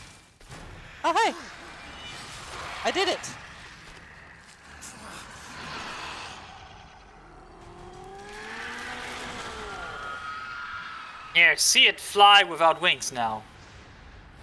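A monster roars and shrieks loudly.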